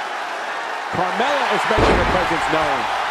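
A body slams hard onto a wrestling ring mat with a loud thud.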